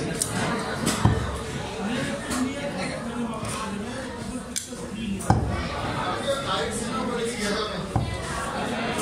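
A heavy blade knocks sharply on a wooden block.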